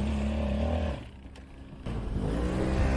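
A quad bike engine cuts out briefly and starts again.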